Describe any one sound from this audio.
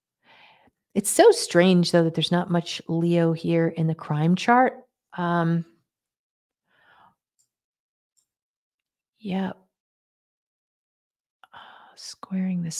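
A woman speaks with animation, heard through a microphone on an online call.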